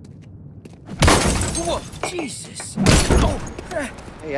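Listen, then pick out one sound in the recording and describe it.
A young man exclaims in surprise.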